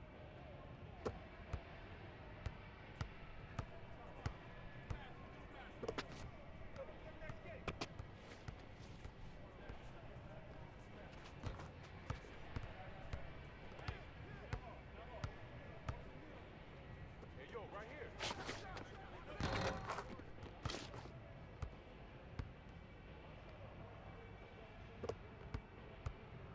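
A basketball bounces on hard pavement in quick repeated thuds.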